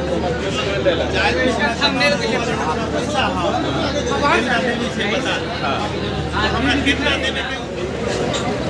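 A boat engine rumbles steadily nearby.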